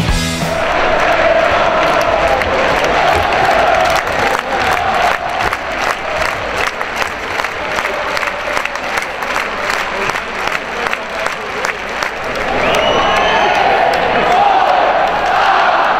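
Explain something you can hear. A large crowd chants loudly in an echoing arena.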